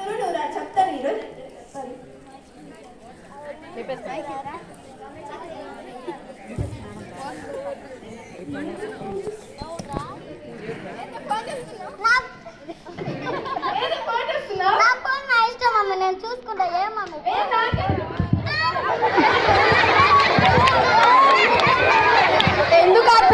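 A girl speaks into a microphone over a loudspeaker, outdoors.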